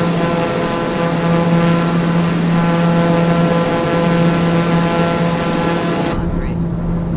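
A single-engine turboprop drones in flight.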